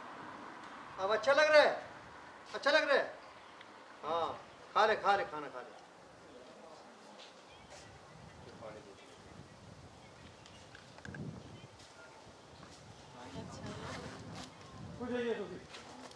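A man speaks loudly in short bursts close by.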